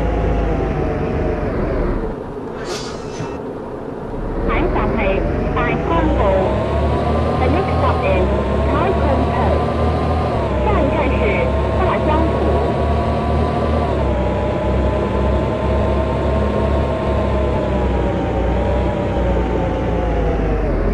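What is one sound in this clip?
A bus engine hums steadily and rises in pitch as it speeds up.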